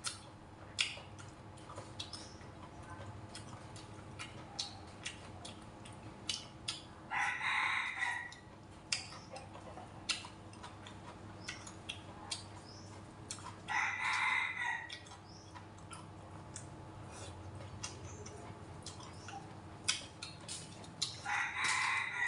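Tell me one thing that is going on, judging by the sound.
Chopsticks click against bowls and plates.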